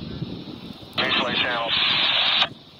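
A man calls out from a short distance away.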